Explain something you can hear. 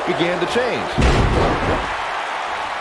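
A heavy body slams down onto a wrestling ring with a deep thud.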